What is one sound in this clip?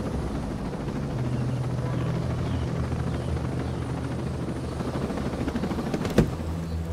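A small drone hums steadily as it flies.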